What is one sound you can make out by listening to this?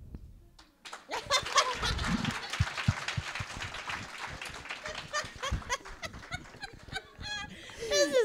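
A group of young women laugh together.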